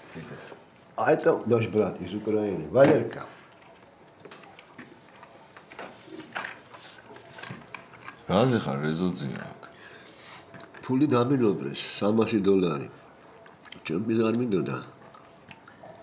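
An elderly man speaks firmly nearby.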